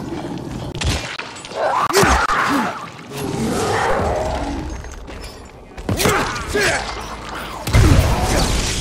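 A blade strikes bodies with heavy, wet thuds.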